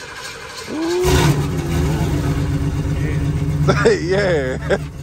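A car engine idles with a deep rumble.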